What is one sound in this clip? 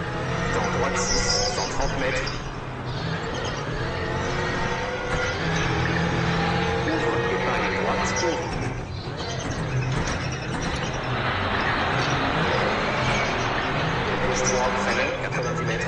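A man talks with animation through a headset microphone.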